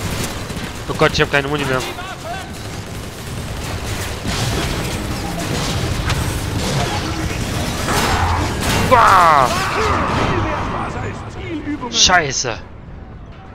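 Explosions boom and crash.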